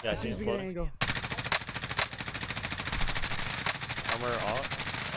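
A rifle fires in rapid, steady bursts.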